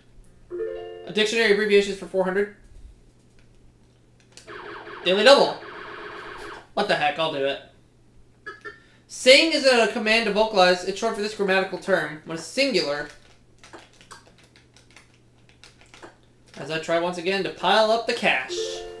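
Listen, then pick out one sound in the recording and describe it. Cheerful electronic video game music plays in short bursts through a television speaker.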